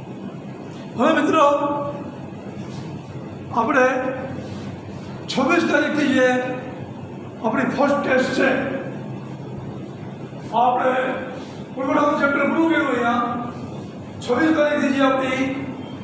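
A middle-aged man speaks close by, explaining with animation.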